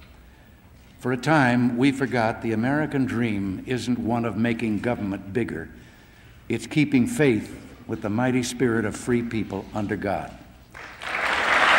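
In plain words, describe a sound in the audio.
An elderly man speaks firmly into a microphone in a large hall.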